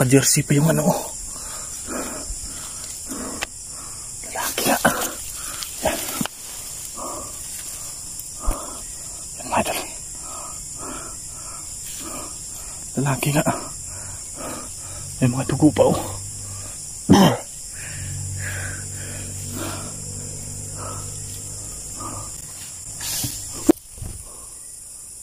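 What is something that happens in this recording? Tall grass rustles close by as it is pushed aside.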